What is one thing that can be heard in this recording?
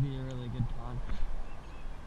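A fishing reel clicks as its handle is wound.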